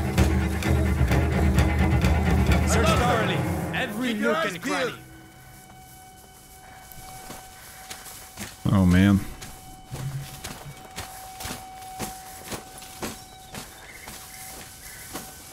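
Tall dry grass rustles softly.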